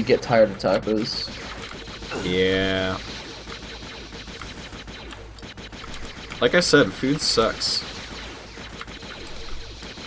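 A blaster rifle fires rapid shots.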